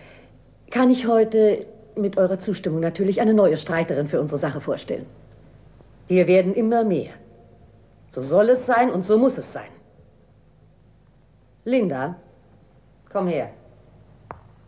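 A woman speaks firmly and with command, close by.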